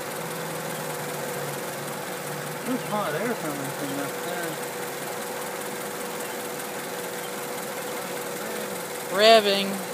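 A car engine idles with a steady hum.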